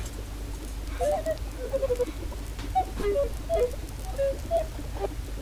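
Short chirping game blips sound in quick succession.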